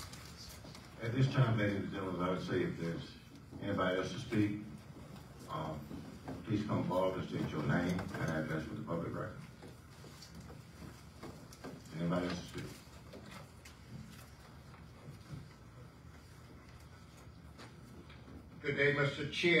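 A man speaks calmly over a microphone in a large echoing room.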